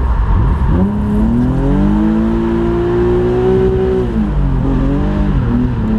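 A car engine roars loudly from inside the cabin, revving up and shifting through gears.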